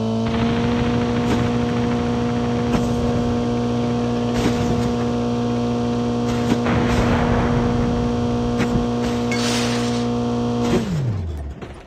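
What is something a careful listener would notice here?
Tyres rumble over bumpy ground.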